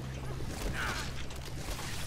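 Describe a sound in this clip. A heavy blow thuds against a creature.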